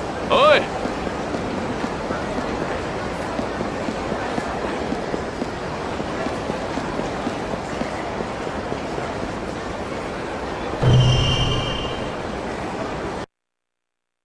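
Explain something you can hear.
A busy city street murmurs steadily.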